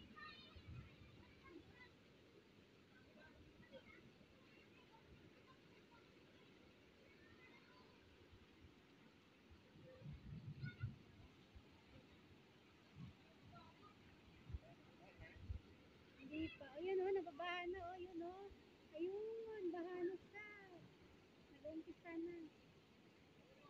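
Children shout and laugh playfully at a distance.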